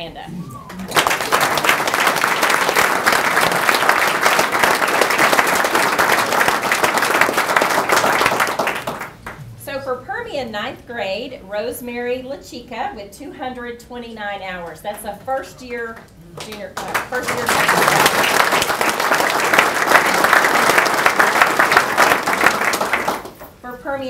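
A crowd applauds in a room.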